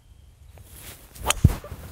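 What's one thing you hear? A golf club swishes through the air.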